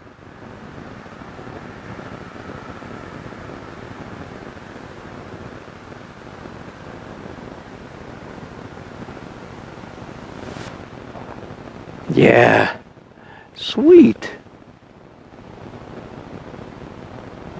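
A paintbrush dabs and scrapes softly on canvas.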